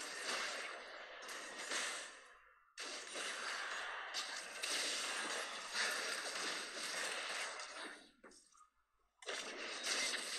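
Game battle sound effects clash and whoosh.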